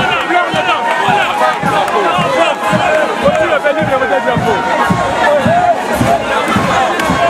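A large crowd sings and chants loudly outdoors.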